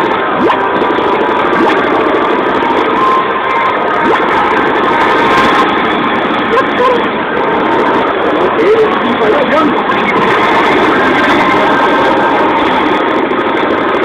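Loud game explosions and laser blasts boom from a speaker.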